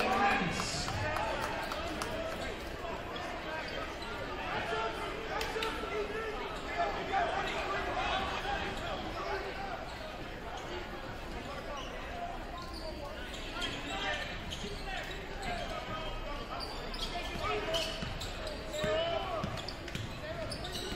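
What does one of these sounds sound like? A crowd of spectators chatters and cheers throughout a large echoing gym.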